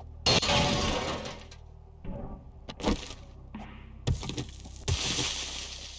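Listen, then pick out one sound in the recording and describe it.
An axe strikes a wooden block with dull knocks.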